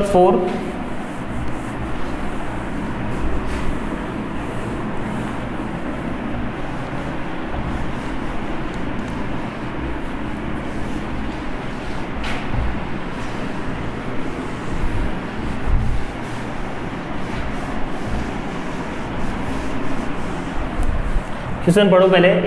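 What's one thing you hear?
A board eraser rubs steadily across a whiteboard.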